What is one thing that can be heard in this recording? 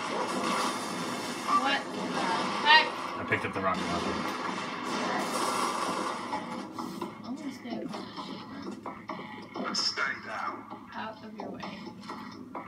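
Video game gunfire crackles in rapid bursts.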